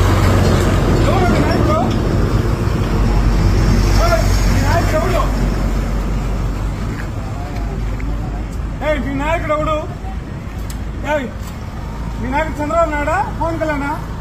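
A man speaks loudly and with animation, close by outdoors.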